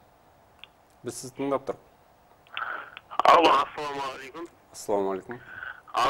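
A young man speaks calmly into a microphone, like a news presenter.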